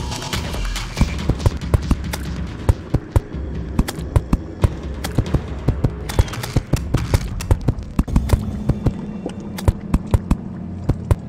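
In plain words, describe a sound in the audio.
A pickaxe chips rapidly at stone in a game.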